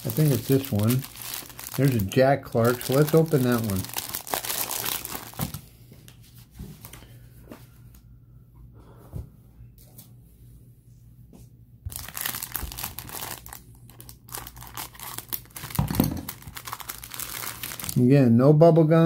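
Plastic wrappers crinkle as hands handle card packs.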